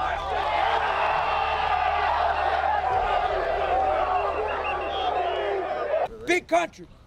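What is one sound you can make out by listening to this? A crowd of young men shouts and cheers loudly.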